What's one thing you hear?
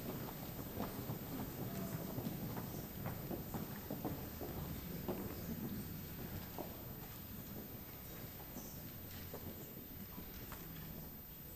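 An audience murmurs and shuffles in a large hall.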